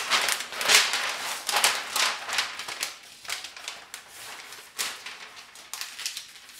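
Hands smooth and slide paper across a hard surface.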